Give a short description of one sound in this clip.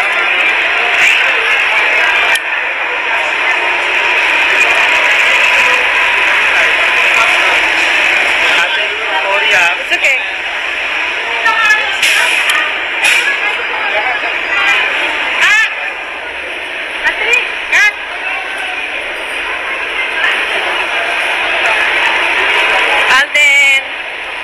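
A crowd chatters and calls out.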